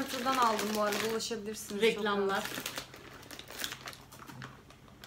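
A plastic snack packet crinkles as it is handled.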